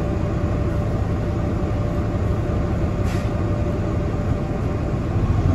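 A bus engine rumbles steadily while the bus moves.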